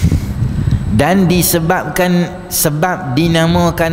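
A man recites in a drawn-out, melodic voice through a microphone.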